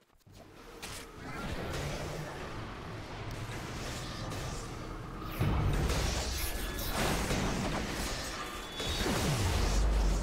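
Magic spells crackle and blast during a fight.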